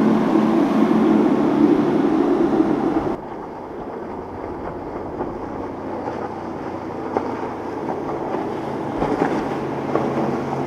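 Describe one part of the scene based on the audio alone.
Water sprays and splashes against a boat hull.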